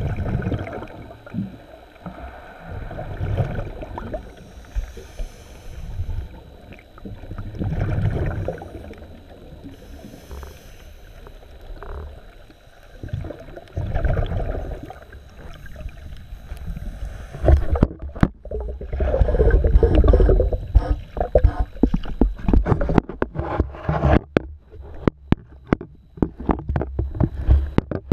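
Water sloshes and rumbles, heard muffled from underwater.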